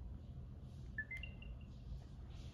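A phone plays a short, soft chime.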